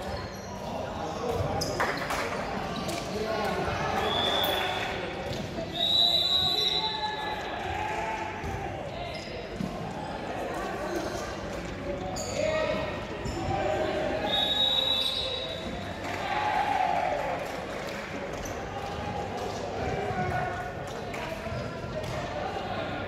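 Young people chatter and call out in a large echoing gym.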